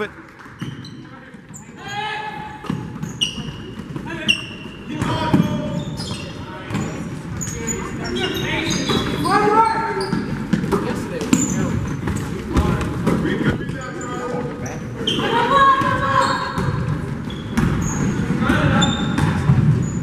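Sneakers squeak sharply on a wooden floor in an echoing gym.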